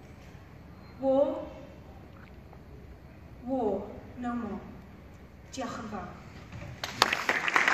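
A woman speaks calmly over a loudspeaker in a large echoing hall.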